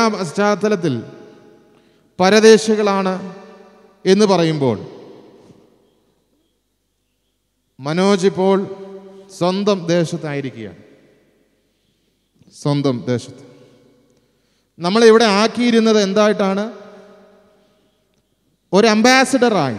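A man speaks into a microphone in short phrases with long pauses, heard in a room with some echo.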